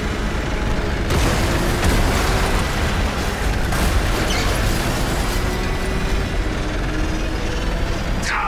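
A loud engine roars steadily.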